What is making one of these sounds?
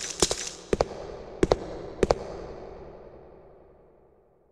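Footsteps run along a hard floor, echoing.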